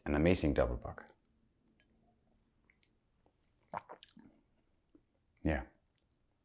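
A man speaks calmly and close up into a microphone.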